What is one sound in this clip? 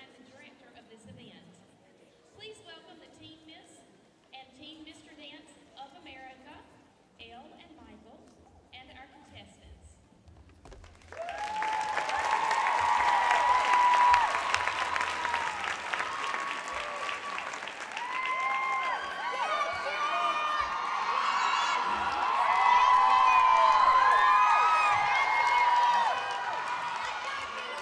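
Dancers' feet tap and shuffle on a wooden stage.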